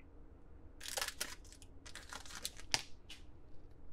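A foil wrapper crinkles and rustles.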